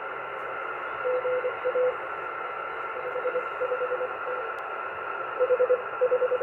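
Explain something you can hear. Morse code beeps in short bursts from a radio receiver.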